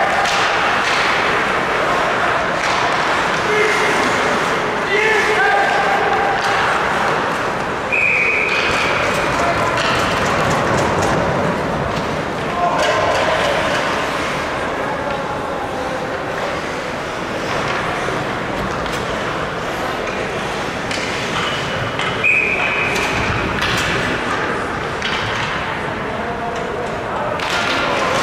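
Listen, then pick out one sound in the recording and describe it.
A crowd cheers and murmurs loudly in a large echoing arena.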